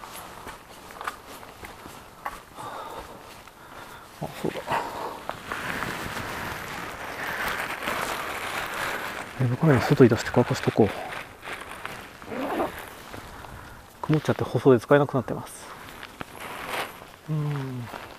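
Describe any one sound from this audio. Footsteps crunch slowly along a gritty dirt path outdoors.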